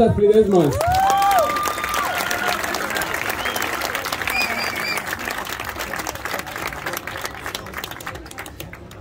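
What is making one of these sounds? A large crowd cheers and whistles outdoors, then settles.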